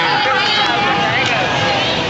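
A crowd chatters and shouts nearby.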